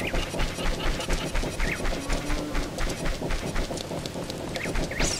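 Quick footsteps patter steadily on the ground.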